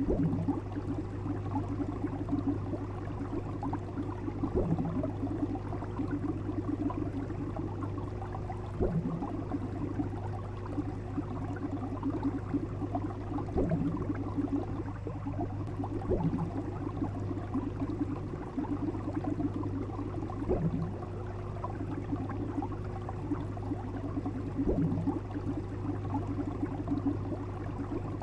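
Aquarium water bubbles and burbles steadily.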